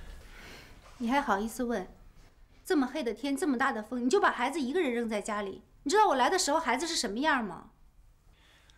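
A young woman speaks with surprise, close by.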